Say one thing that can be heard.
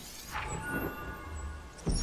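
A magic spell whooshes.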